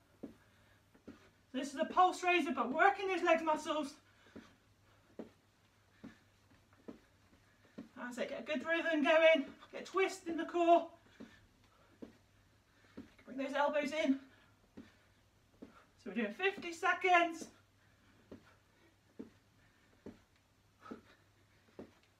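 Feet thud softly on a carpeted floor.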